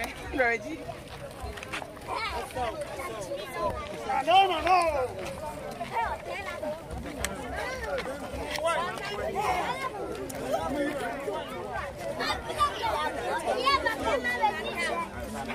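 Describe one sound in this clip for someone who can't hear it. A crowd of men and women talk and call out all around, close by.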